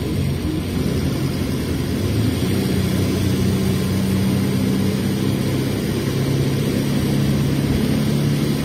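A bus engine idles with a low, steady rumble close by.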